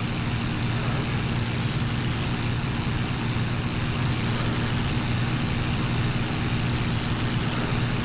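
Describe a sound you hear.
Wind rushes past an aircraft canopy.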